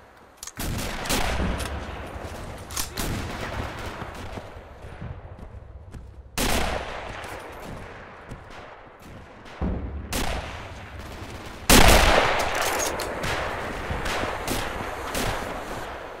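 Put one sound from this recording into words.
Rifle shots boom and echo away slowly.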